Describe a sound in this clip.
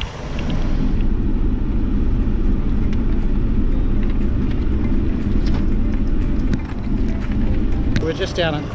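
A vehicle engine rumbles steadily while driving over a rough track.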